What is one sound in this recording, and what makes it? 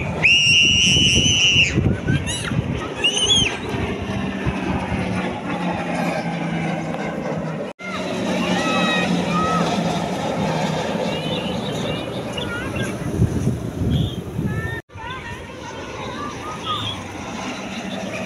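Propeller aircraft engines drone overhead.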